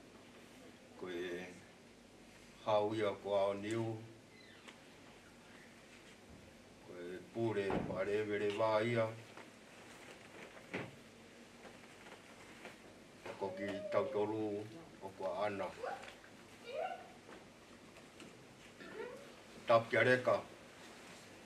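A middle-aged man speaks slowly and solemnly into a microphone, with long pauses.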